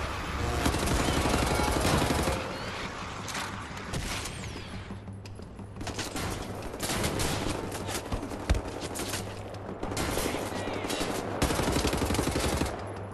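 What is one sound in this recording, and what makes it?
A rifle fires rapid, loud bursts.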